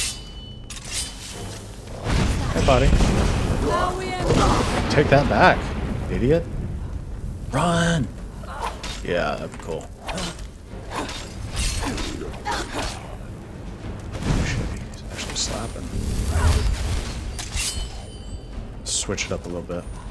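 A sword swings and clashes.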